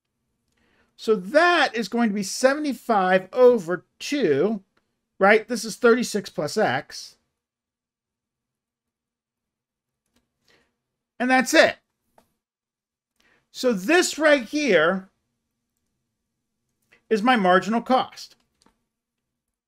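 A middle-aged man speaks calmly and clearly into a close microphone, explaining in short bursts with pauses.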